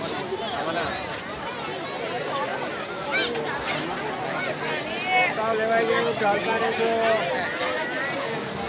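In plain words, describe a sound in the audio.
A crowd of men, women and children chatters and calls out nearby, outdoors.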